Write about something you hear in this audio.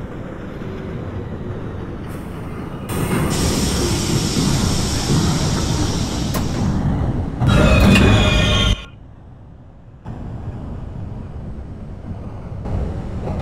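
A train rumbles and rattles along the tracks.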